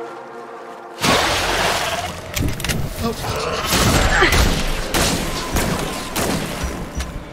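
An energy gun fires rapid crackling electric bursts.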